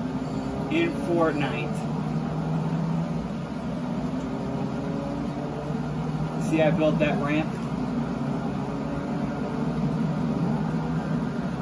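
A game car's engine hums steadily through a television speaker.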